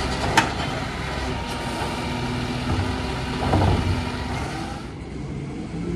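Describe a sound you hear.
A garbage truck engine idles with a low, steady rumble nearby.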